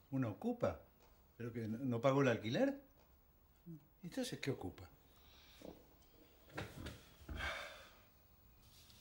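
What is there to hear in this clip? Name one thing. An older man speaks calmly.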